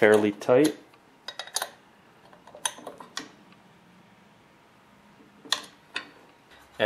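A wrench clicks against a metal bolt.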